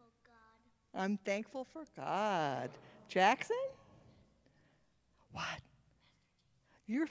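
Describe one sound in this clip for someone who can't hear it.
Children answer in high voices.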